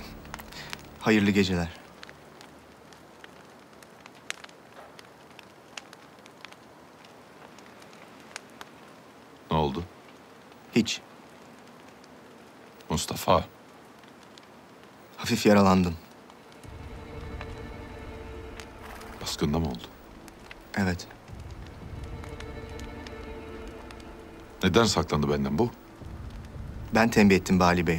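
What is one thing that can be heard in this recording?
A young man speaks calmly and quietly, close by.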